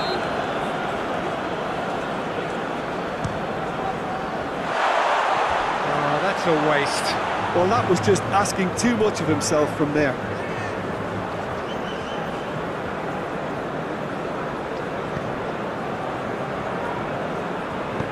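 A stadium crowd murmurs and chants steadily.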